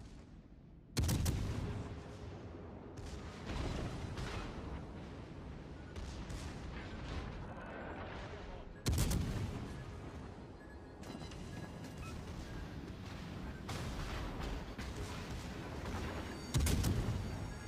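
Heavy naval guns fire in loud booming blasts.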